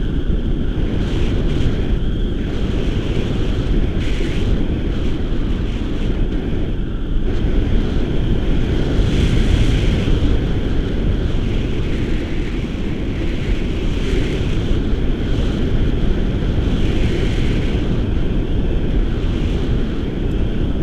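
Strong wind rushes and buffets loudly against a microphone.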